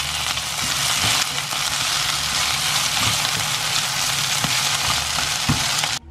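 A plastic spatula scrapes and knocks against a frying pan.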